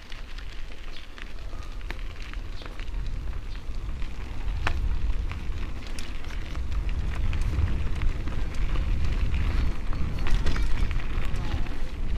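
Bicycle tyres crunch and rattle over a gravel road.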